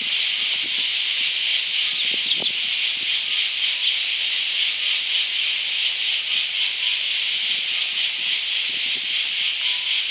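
Small birds peck at seed on a wooden post.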